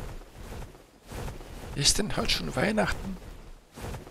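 Large wings flap.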